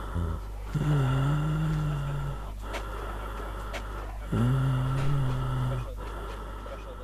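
Young people talk with one another outdoors.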